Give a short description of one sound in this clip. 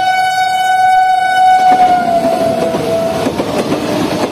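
A train horn blares loudly and then drops in pitch.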